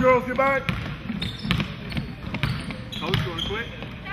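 A basketball bounces on a wooden floor with an echo.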